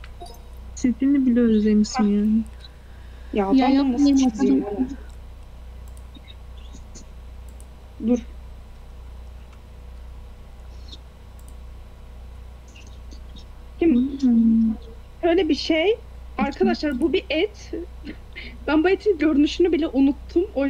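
A young woman talks with animation close to a microphone, pausing now and then.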